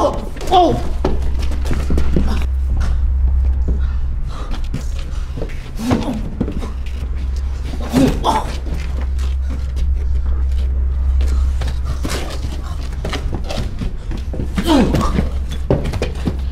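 A man grunts and groans in pain.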